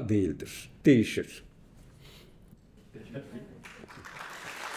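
A middle-aged man speaks with animation through a microphone in a hall.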